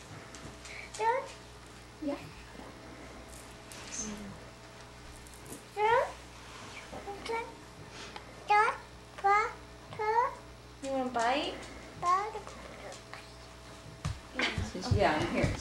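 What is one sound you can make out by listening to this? A woman speaks close by in a high, playful, sing-song voice.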